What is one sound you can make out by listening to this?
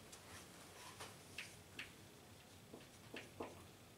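A marker squeaks on a whiteboard in short strokes.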